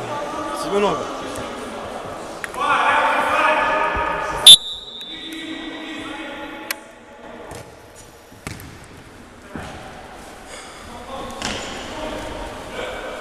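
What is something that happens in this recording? Players' shoes squeak and thud on a hard court in a large echoing hall.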